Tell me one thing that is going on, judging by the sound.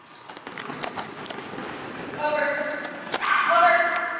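Footsteps run across a padded floor.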